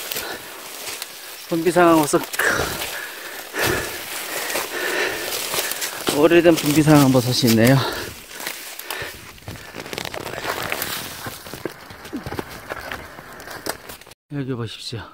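Dry leaves and twigs crunch and rustle underfoot.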